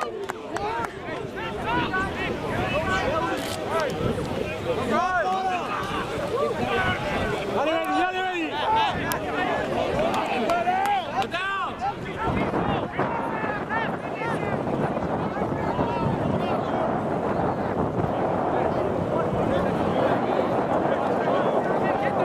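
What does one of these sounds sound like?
Young players shout to each other on an outdoor field.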